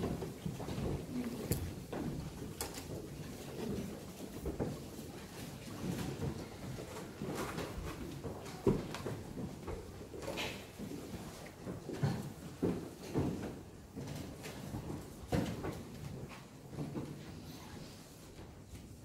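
A man speaks softly in an echoing hall.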